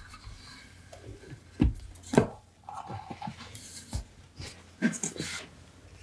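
A wooden box thuds as it is set down.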